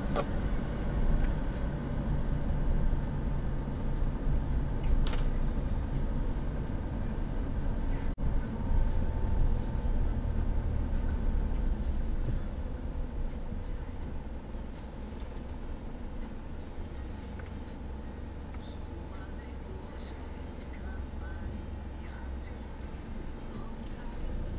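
A car engine hums steadily from inside the car, growing quieter as the car slows to a stop.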